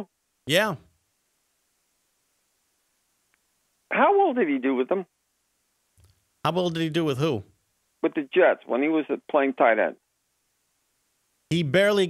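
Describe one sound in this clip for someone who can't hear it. A middle-aged man speaks calmly and close to a microphone, in short bursts with pauses.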